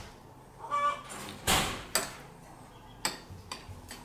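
A spoon clinks against a bowl.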